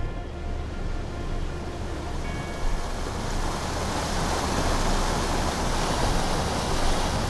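Rushing water splashes loudly around a boat, growing stronger.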